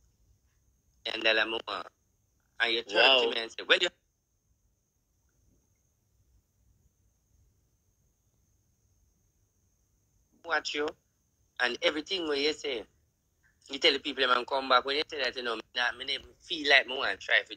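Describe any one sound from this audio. A woman speaks with animation, close to a phone microphone.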